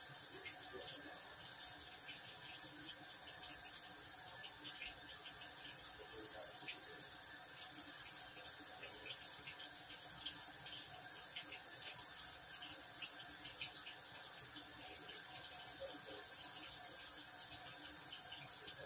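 A top-load washing machine runs through its rinse cycle.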